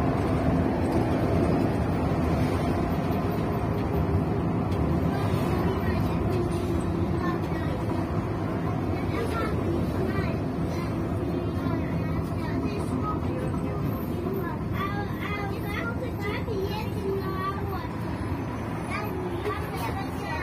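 A bus engine hums and rumbles steadily from inside the cabin.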